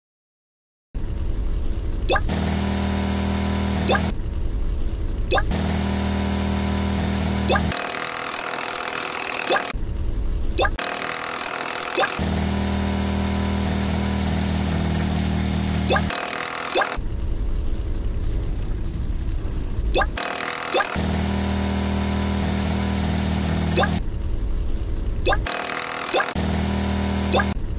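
A motor engine hums steadily, its tone shifting now and then.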